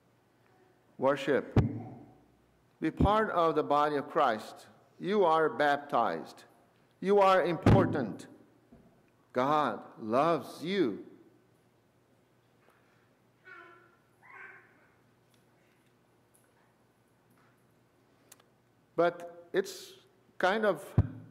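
An elderly man speaks calmly into a microphone in a reverberant room, pausing between phrases.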